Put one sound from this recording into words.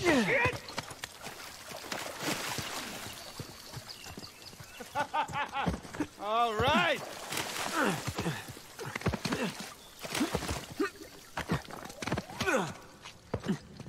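Footsteps run over soft ground and stone.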